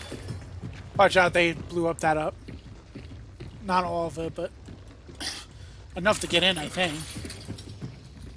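A young man speaks into a close microphone with animation.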